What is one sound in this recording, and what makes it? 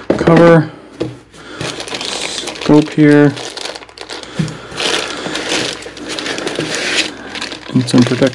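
A cardboard box scrapes and thumps as its contents are lifted out.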